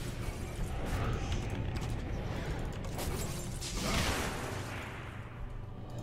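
Magic spells crackle and whoosh in a fierce fight.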